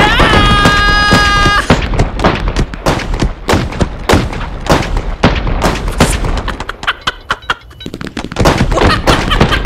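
A young boy laughs and shrieks excitedly into a microphone.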